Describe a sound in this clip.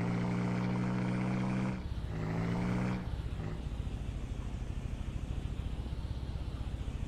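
A tractor engine hums and chugs steadily as it drives along.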